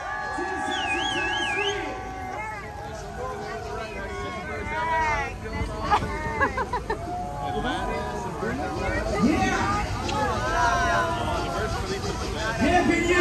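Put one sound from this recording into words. A crowd of young adults cheers and shouts nearby.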